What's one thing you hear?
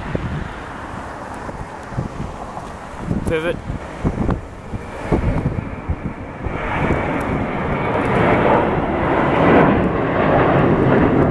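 A jet airliner roars overhead as it climbs, its engine noise swelling.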